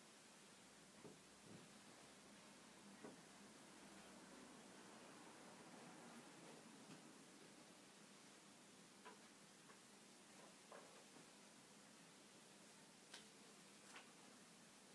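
Small objects knock and clink softly as they are handled.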